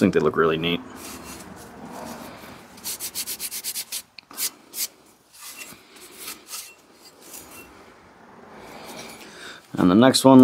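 A scouring pad scrubs briskly against a metal axe head in quick strokes.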